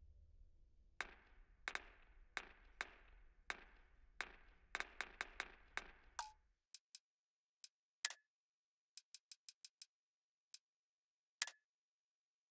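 Soft menu clicks tick one after another.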